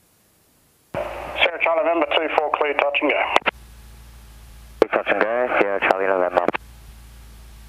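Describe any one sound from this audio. A man speaks over a crackly aircraft radio.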